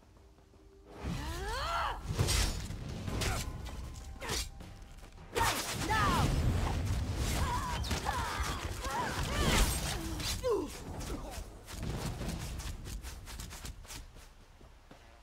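Weapons strike and slash in a fast fight.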